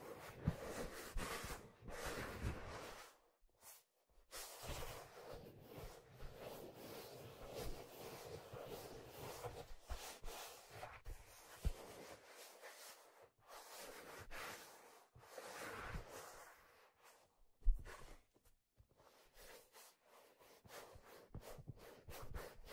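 Fingers rub and tap on a leather surface close to a microphone.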